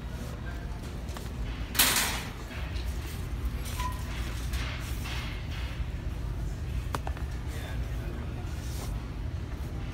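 Shoes scuff and tap on a hard floor.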